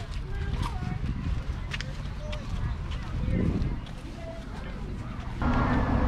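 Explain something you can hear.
Footsteps scuff softly on a paved path.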